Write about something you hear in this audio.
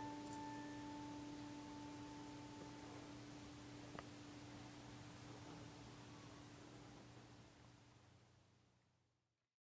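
A piano chord rings out and slowly fades away.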